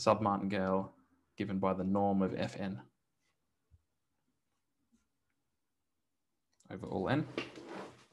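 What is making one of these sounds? A man speaks calmly and close to a microphone, pausing between phrases.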